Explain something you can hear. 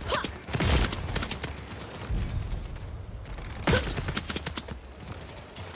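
Rapid gunshots crack in bursts.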